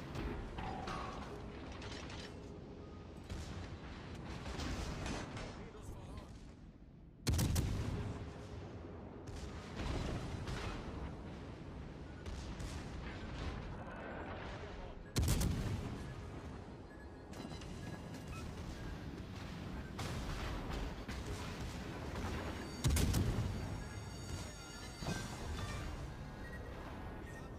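Shells splash and explode in the water nearby.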